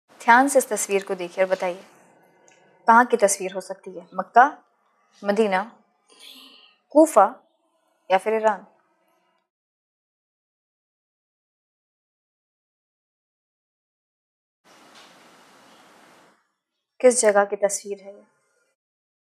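A young woman speaks calmly into a microphone, asking questions.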